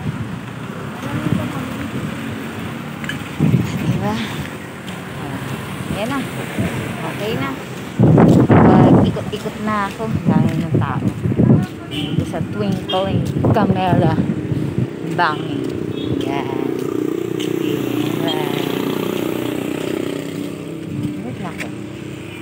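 A woman talks close to the microphone.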